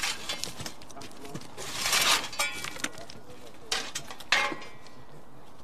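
Metal shovels scrape and clank.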